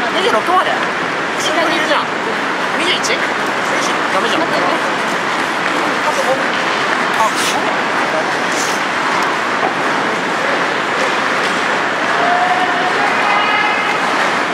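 Ice skates scrape and hiss across the ice in a large echoing hall.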